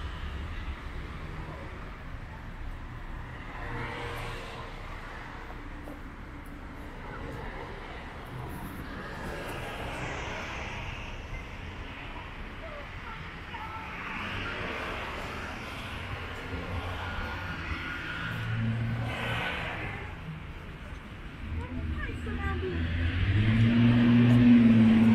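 Cars drive past on a nearby street.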